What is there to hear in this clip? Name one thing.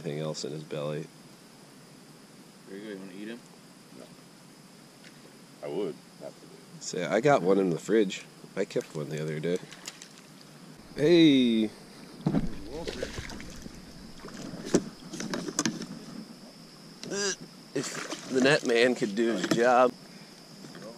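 A man talks casually nearby, outdoors.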